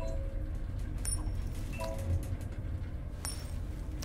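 A coin flips and clinks between fingers.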